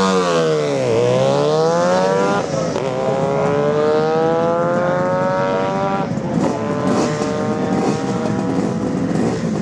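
A motorcycle engine revs hard, climbing in pitch again and again as it shifts up through the gears and pulls away.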